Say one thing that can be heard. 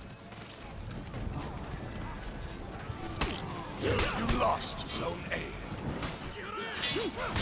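A crowd of men shouts and yells in battle.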